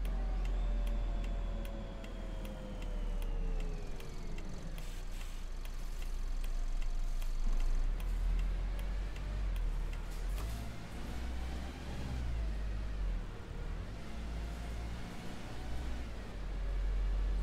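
A bus engine hums and rises and falls in pitch as the bus slows and speeds up.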